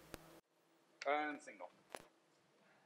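A man speaks briefly into a microphone in a large hall.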